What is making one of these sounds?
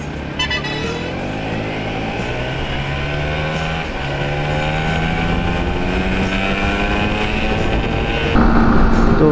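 A single-cylinder sport motorcycle engine accelerates through the gears.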